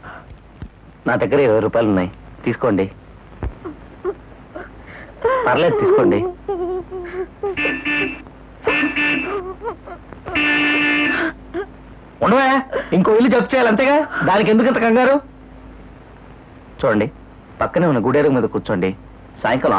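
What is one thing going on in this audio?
A man speaks with feeling, close by.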